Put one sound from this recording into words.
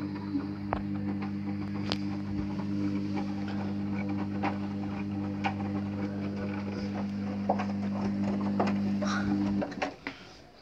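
A washing machine hums steadily as its drum turns, then stops.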